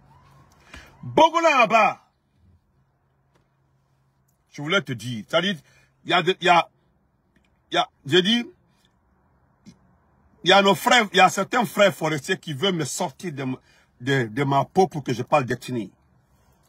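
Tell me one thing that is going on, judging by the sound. A man speaks with animation close to a phone microphone, in bursts with pauses.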